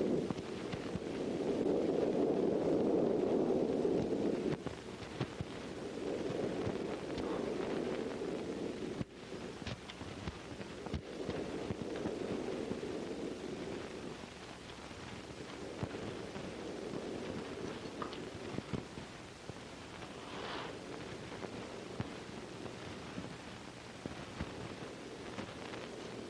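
A man shuffles and scrapes on a floor.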